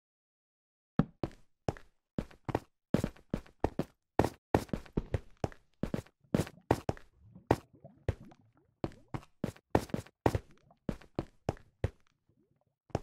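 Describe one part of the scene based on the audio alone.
Footsteps thud on stone in a steady rhythm.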